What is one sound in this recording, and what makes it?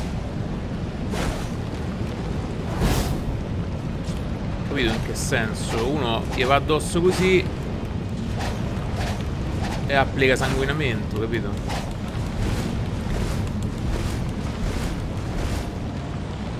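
Blades whoosh and clash in quick swings.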